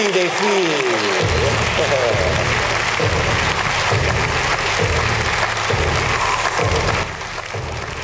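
A crowd applauds and cheers loudly in a large hall.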